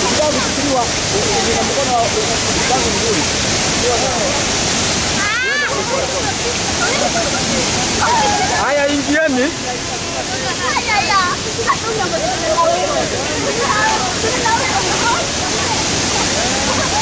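Young men and women talk and shout with animation nearby.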